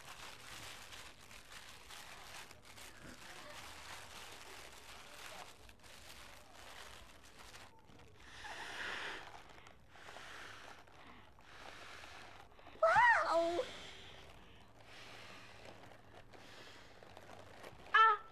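Paper and plastic wrapping rustle and tear.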